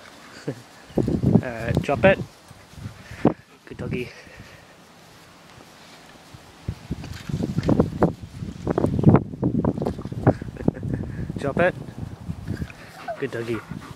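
A dog whines and yelps excitedly close by.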